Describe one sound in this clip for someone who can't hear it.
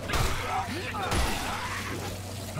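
Flesh tears and splatters wetly.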